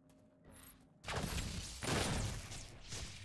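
A loud explosion roars and rumbles.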